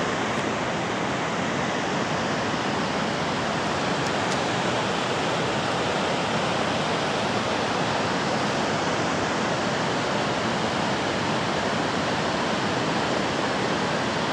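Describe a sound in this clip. A mountain river roars as it rushes through a rocky gorge.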